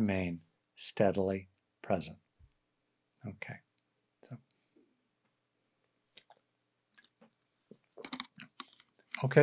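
An older man speaks calmly, close to a microphone.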